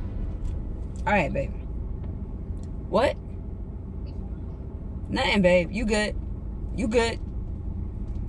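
A young woman speaks briefly into a phone, close by, with pauses.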